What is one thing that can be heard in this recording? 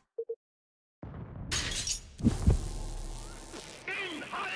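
A game explosion booms.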